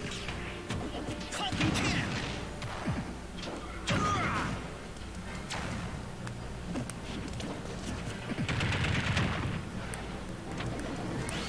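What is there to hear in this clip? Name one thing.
Video game hits and blasts pop repeatedly.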